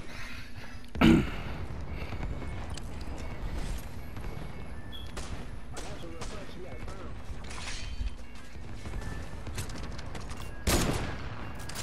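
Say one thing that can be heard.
Rifle shots crack loudly in a game.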